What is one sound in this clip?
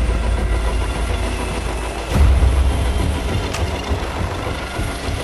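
A helicopter's rotor thumps loudly and its engine roars close by.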